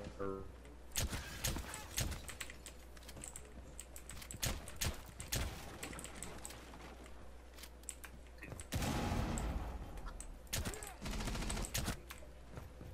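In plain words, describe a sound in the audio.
Gunshots fire in sharp, rapid bursts.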